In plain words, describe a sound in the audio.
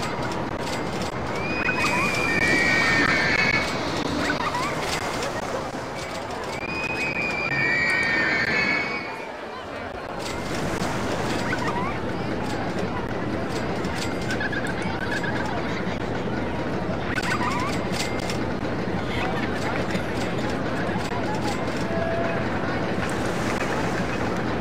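A roller coaster train rattles and clatters along its track.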